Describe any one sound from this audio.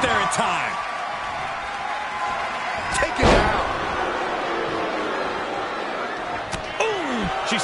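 A crowd cheers and roars in a large arena.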